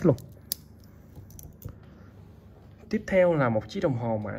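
A metal watch clinks softly as a hand picks it up.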